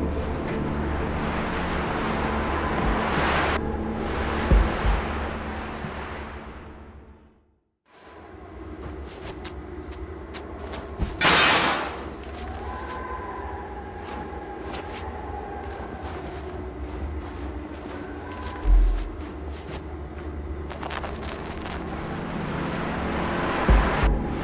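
Strong wind howls through a blizzard.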